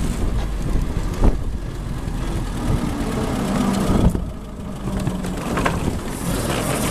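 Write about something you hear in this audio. Wind buffets loudly past an open car.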